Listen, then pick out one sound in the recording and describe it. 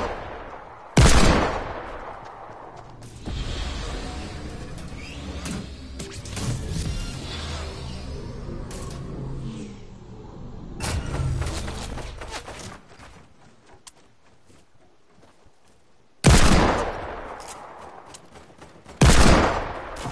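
A gun fires loud shots that echo away.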